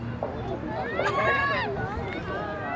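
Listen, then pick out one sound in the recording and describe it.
A young girl shouts loudly in a high voice.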